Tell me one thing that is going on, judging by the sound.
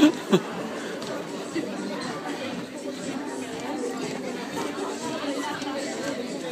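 A crowd of people chatters loudly in a large echoing hall.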